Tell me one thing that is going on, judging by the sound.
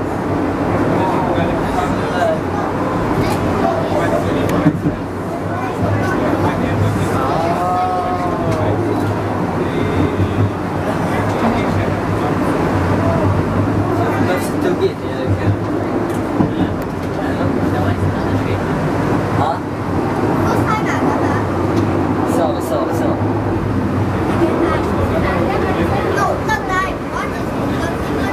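A funicular car rumbles steadily along its rails.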